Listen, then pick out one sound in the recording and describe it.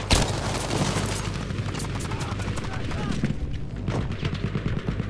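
Gunfire cracks and booms nearby.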